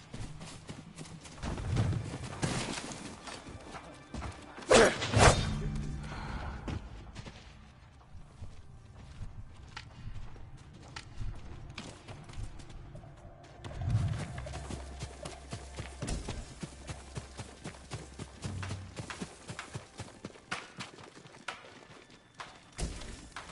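Footsteps rustle quickly through grass and brush.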